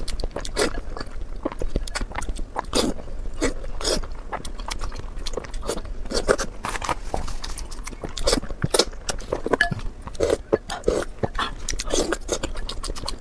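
A woman sucks sauce noisily through her lips.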